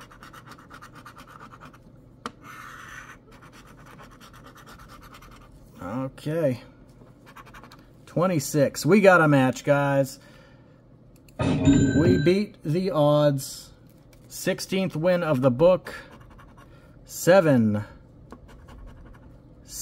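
A coin scratches at a scratch card with quick rasping strokes.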